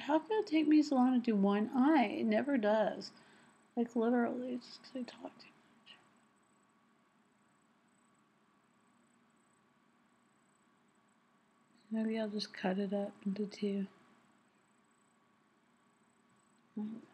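A woman talks calmly close to the microphone.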